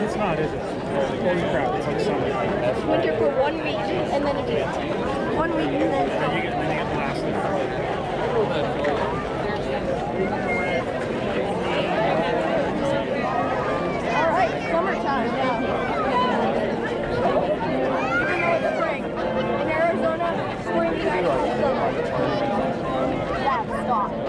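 A large crowd of men and women chatters close by, outdoors.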